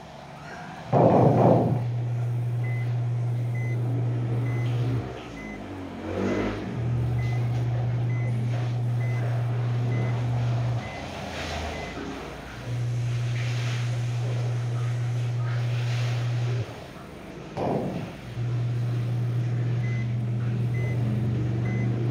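A bus engine drones steadily, cutting in and out.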